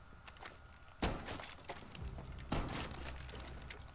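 Wooden floorboards splinter and break apart.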